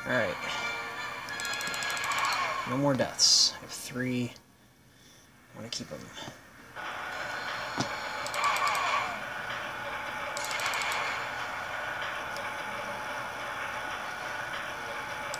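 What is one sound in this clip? Game sound effects play through small laptop speakers.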